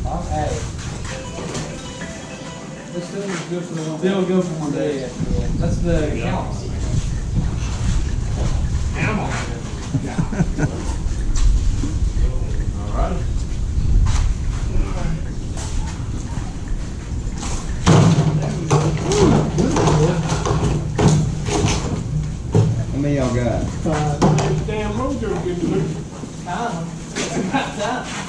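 Several men talk casually nearby.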